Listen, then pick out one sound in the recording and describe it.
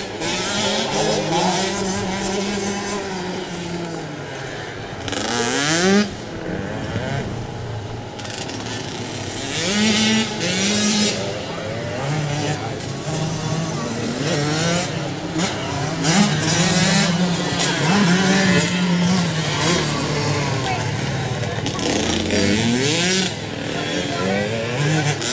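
Small dirt bike engines whine and rev across an open track.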